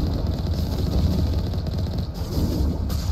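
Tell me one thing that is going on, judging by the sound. An electric blast crackles and explodes.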